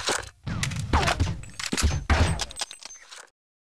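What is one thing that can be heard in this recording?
A rifle is reloaded with a metallic clack of the magazine.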